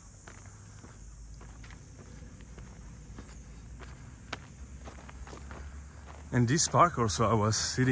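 Footsteps crunch slowly on a dry dirt path outdoors.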